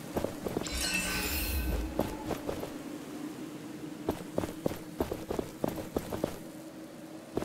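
Footsteps crunch over grass and rock at a steady walking pace.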